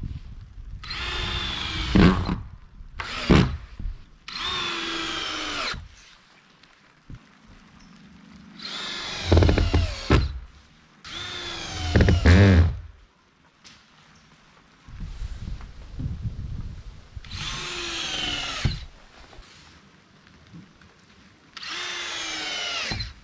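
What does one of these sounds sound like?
A cordless screw gun whirs in short bursts.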